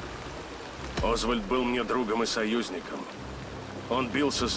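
A middle-aged man answers in a low, firm voice up close.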